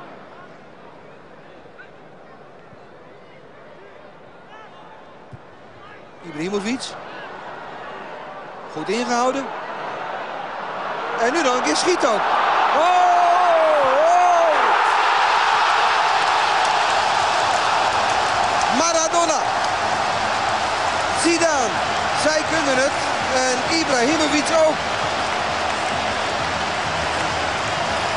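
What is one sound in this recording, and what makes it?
A large stadium crowd murmurs, then roars loudly in a cheer.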